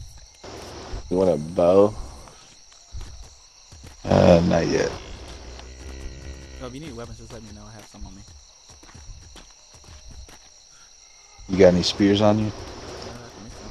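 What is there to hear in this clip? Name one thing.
A cow moos loudly several times.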